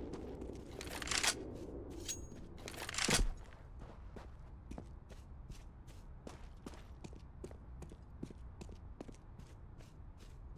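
Footsteps run quickly and steadily on hard ground.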